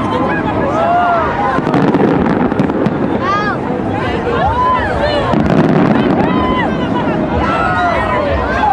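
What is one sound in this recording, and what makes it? Fireworks crackle and pop overhead.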